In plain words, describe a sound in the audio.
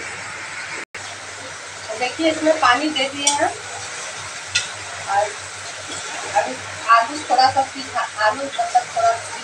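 Oil sizzles in a frying pan.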